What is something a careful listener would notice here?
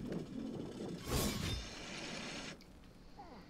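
A magical weapon swings and strikes with a booming whoosh.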